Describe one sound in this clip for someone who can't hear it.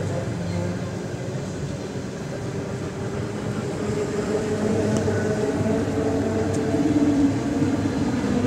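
An electric train rumbles past close by, wheels clattering on the rails.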